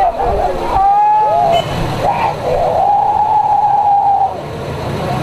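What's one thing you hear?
A woman screams loudly.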